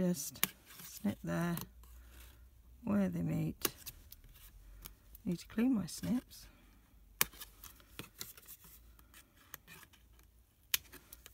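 Scissors snip through thin card with crisp clicks.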